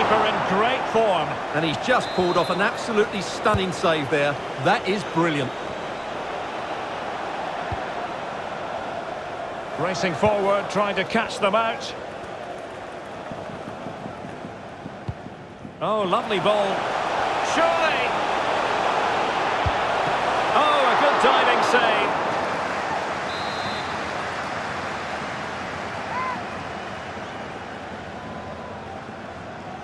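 A large stadium crowd roars and murmurs steadily, swelling louder for a while.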